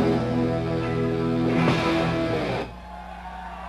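A rock band plays a loud, ringing final chord.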